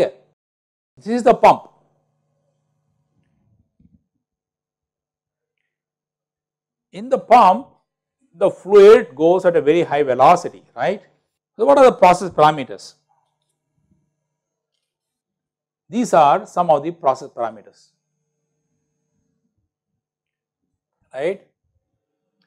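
A middle-aged man speaks calmly, close to a microphone, with pauses.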